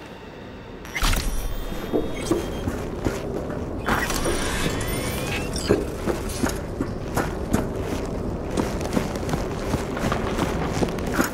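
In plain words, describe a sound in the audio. Footsteps crunch on gravel at a steady walking pace.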